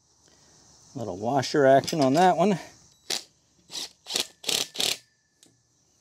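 A cordless drill buzzes in short, stuttering bursts.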